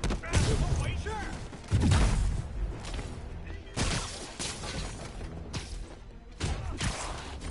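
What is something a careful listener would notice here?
Punches and kicks thud in a game fight.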